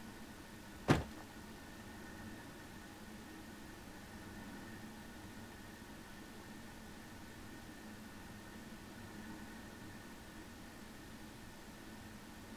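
Flames crackle softly nearby.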